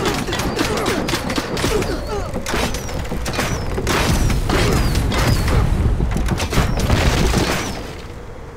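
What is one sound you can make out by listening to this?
A crossbow fires bolts with sharp snaps.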